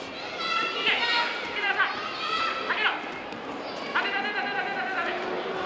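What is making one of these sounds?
Bare feet thud and shuffle on a mat.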